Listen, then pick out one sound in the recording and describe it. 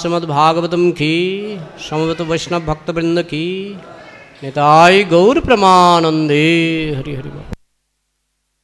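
A man sings or chants through a microphone and loudspeakers.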